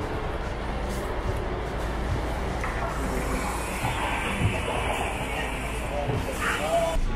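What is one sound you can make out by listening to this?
Footsteps thud up the steps of a bus.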